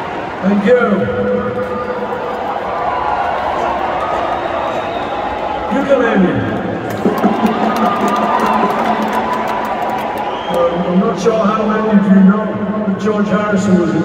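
A singer sings through a microphone over the music.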